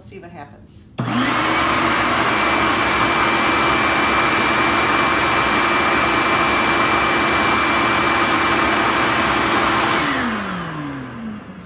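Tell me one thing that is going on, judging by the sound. A vacuum cleaner motor switches on with a loud steady roar, then winds down.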